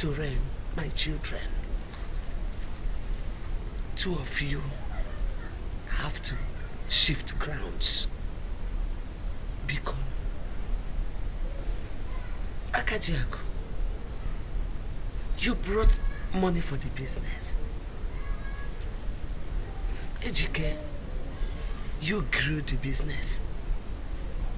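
A middle-aged woman speaks with animation close by.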